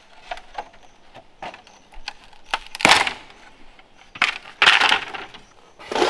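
Bamboo poles clatter and knock as they are dragged over the ground.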